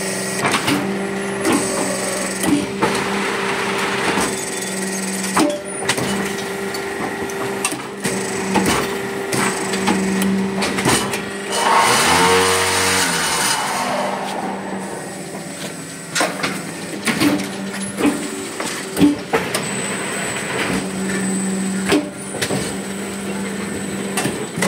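Metal parts of a machine clank and knock repeatedly.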